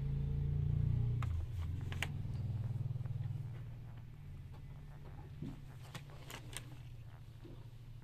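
Hands rustle and rub soft knitted toys close by.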